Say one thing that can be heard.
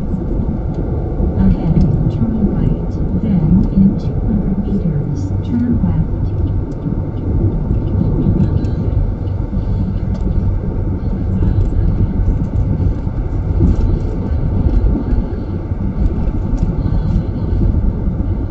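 A car engine hums steadily as tyres roll over the road.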